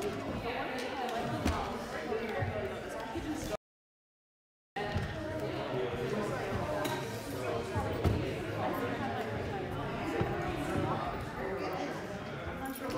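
Many children and adults chatter together in a large echoing room.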